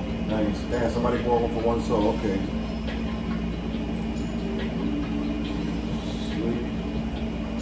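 A man speaks casually close to a microphone.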